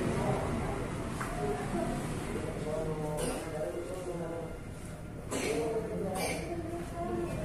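Footsteps shuffle across a tiled floor.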